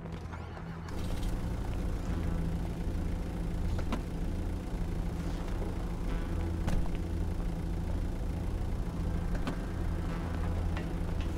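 A van engine idles with a low, steady rumble.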